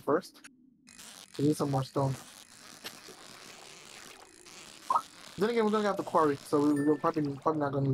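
A fishing reel whirs steadily as a fish is reeled in.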